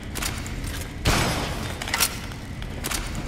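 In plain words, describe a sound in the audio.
A heavy metal door opens with a clank.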